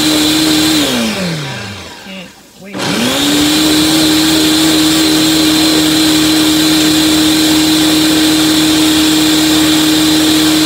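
A blender whirs loudly at high speed.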